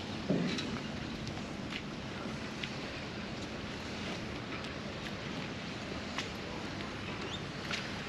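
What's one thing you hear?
Water laps gently against a dock.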